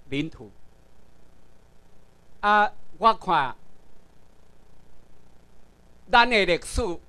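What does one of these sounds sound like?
A man speaks into a microphone over loudspeakers in a large room, in short bursts with pauses.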